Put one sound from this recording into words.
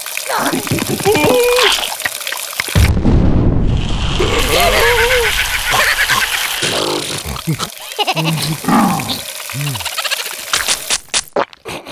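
Cartoon creatures scream and shout in squeaky, high voices.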